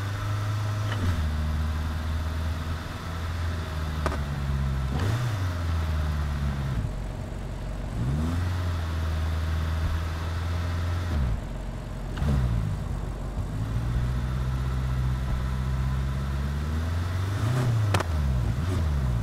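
A car engine hums low and steady, rising and falling in pitch as the car speeds up and slows down.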